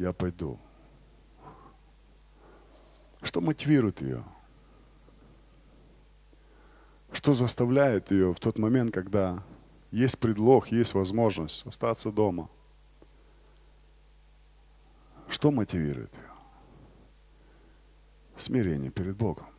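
A middle-aged man speaks with animation through a microphone, in pauses, in a large echoing hall.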